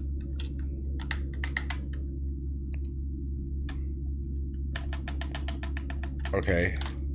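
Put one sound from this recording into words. Keys clatter as a keyboard is typed on.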